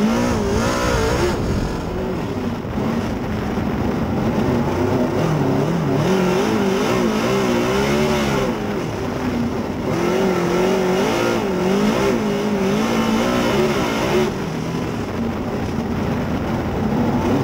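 A race car engine roars loudly from close by, revving up and down again and again.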